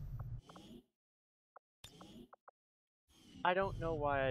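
A soft electronic click sounds as a menu option is picked.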